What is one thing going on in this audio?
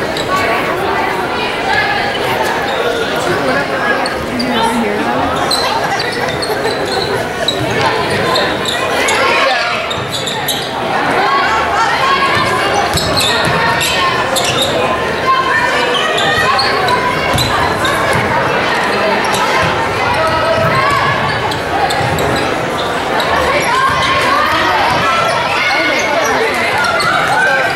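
Basketball sneakers squeak sharply on a hardwood floor.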